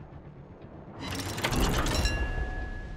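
Shells splash into water nearby.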